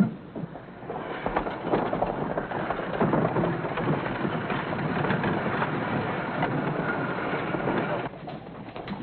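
A horse-drawn wagon rattles past with clopping hooves.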